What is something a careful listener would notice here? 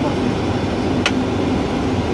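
A switch clicks sharply.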